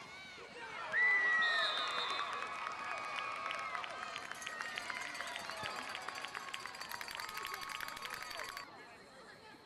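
A crowd of young men and boys cheers and shouts outdoors.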